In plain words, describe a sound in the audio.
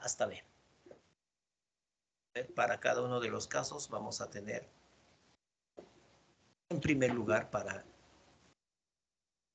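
A man speaks calmly through a microphone on an online call.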